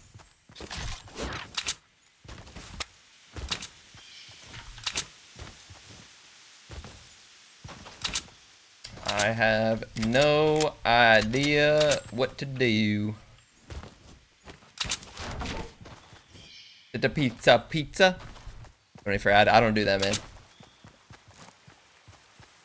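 Game gunshots crack in quick bursts.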